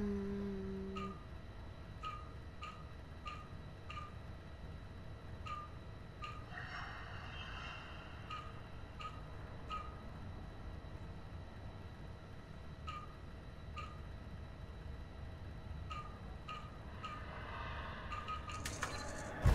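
A computer terminal gives short, soft electronic beeps at uneven intervals.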